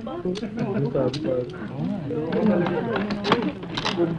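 Metal handcuffs click shut.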